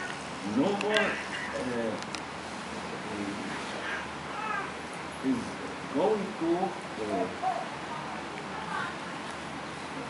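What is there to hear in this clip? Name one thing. An elderly man reads aloud slowly in a low, chanting voice close by.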